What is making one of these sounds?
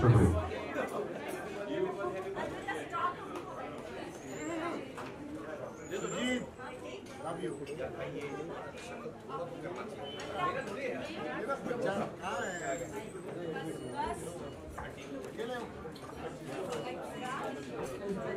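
A crowd of men and women chatter and talk over one another close by.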